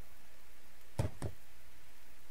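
A wooden structure thuds into place.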